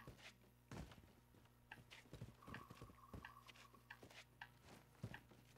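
Footsteps tread on rock.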